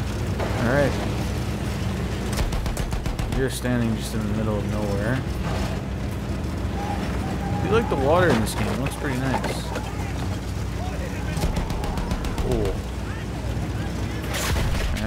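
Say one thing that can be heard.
A tank engine rumbles and clanks steadily as the tank drives.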